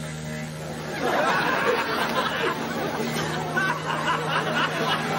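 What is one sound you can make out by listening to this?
A young woman laughs excitedly close by.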